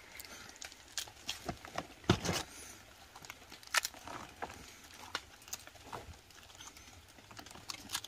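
Fungi snap softly as a hand picks them off a log.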